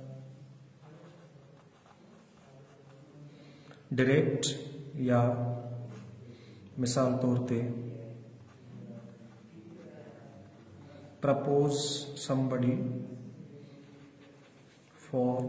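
A marker scratches softly on paper.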